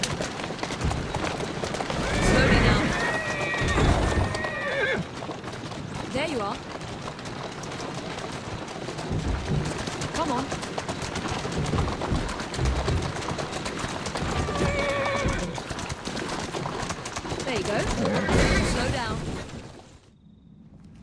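Horse hooves clatter on cobblestones at a steady trot.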